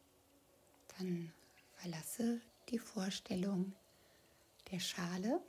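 A woman speaks softly and calmly, close by.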